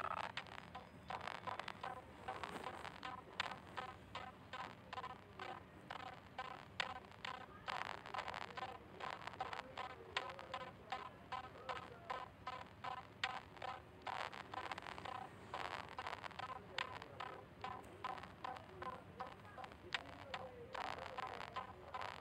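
Light, bouncy music plays with a steady beat.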